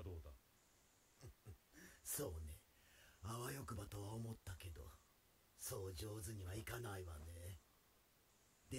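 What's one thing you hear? A man answers in a soft, raspy voice with a quiet chuckle.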